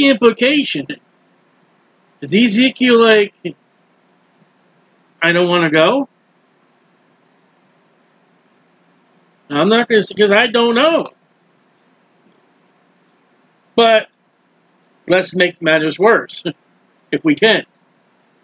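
A middle-aged man reads aloud slowly and calmly, close to a microphone, with long pauses.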